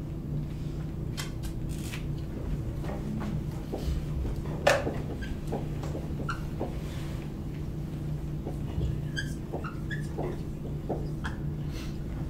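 A man writes on a whiteboard with a marker, squeaking and tapping.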